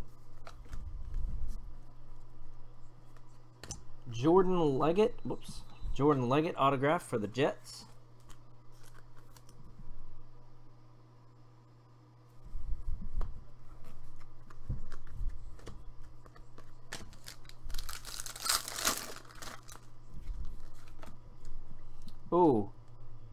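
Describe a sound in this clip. Trading cards rustle and slide against each other in hand.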